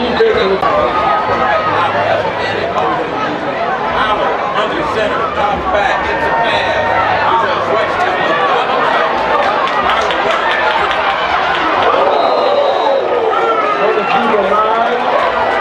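A large outdoor crowd cheers and chatters loudly.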